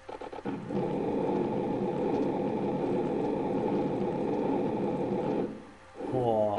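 A burst of fire roars steadily.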